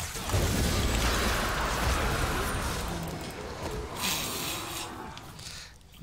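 Magic blasts burst and crackle in a busy fight.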